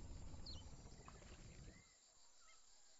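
A boat engine hums steadily, then stops.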